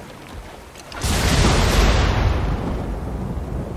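Water splashes and rushes as a wooden boat is pushed off.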